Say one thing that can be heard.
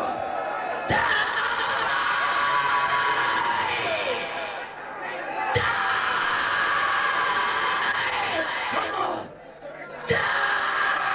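Drums crash with single hits.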